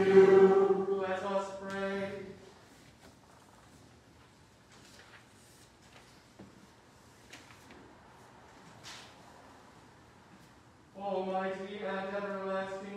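A man chants in a sustained, steady voice in a resonant room.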